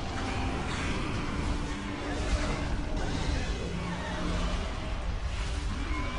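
Magic spells crackle and burst in a game.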